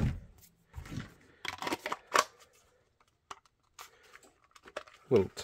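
Plastic and fabric rustle and click as hands handle a holster.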